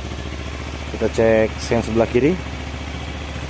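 A motorcycle engine revs sharply a few times.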